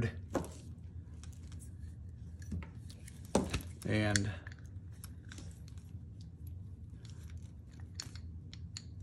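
Small metal parts clink and rattle as they are handled.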